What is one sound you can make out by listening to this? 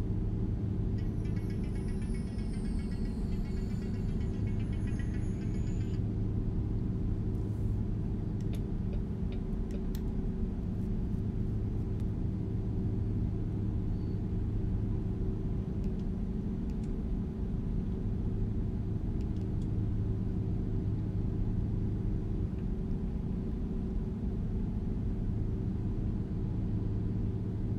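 A truck engine hums low and steady inside the cab.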